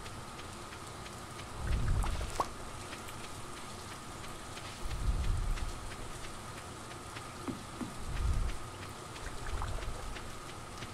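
Light footsteps patter quickly on dirt.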